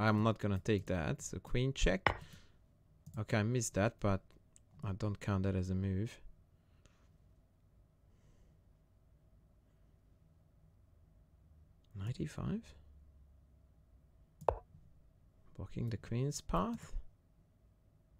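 A middle-aged man speaks calmly in short bursts, close to a headset microphone.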